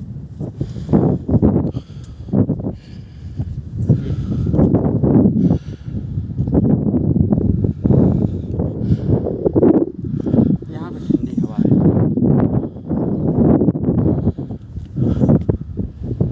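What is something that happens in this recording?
Strong wind gusts and buffets outdoors.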